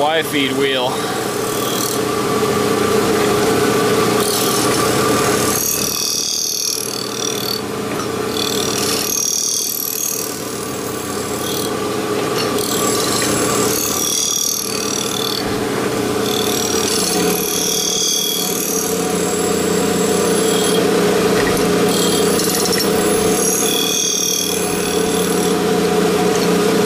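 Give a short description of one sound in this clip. A grinding machine hums and whines steadily.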